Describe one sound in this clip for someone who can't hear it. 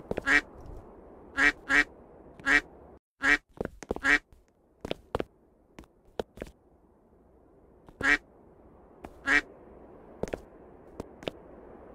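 A video game character jumps repeatedly with short springy sound effects.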